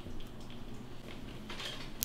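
Mayonnaise squelches softly out of a piping bag.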